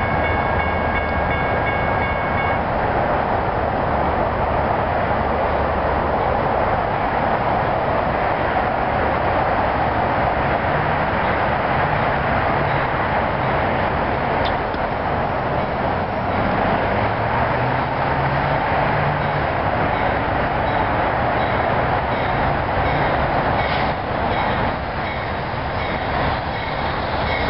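A train rumbles and hums as it slowly pulls in, growing closer.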